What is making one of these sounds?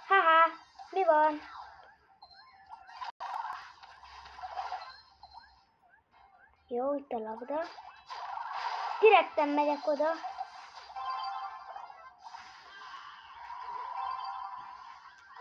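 Electronic game blasts and zaps sound in quick bursts.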